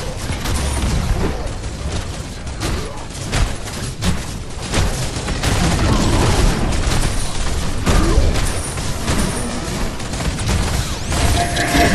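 Swords clash and magic blasts crackle in a fierce fight.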